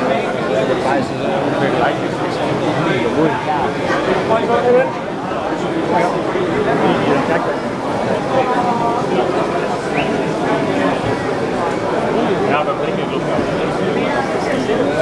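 A crowd of people chatter all around in a large echoing hall.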